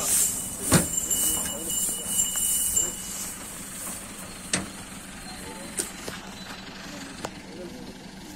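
Hooves thud on a wooden truck ramp.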